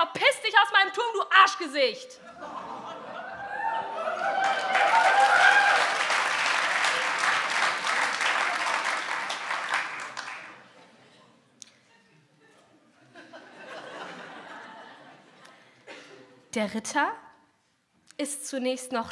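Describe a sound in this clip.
A young woman reads aloud into a microphone.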